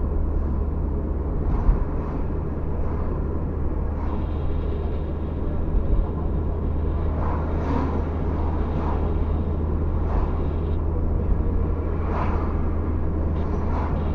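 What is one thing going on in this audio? A car drives on asphalt, heard from inside the cabin.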